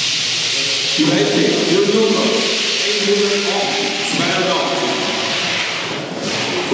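A man talks nearby in a large echoing hall.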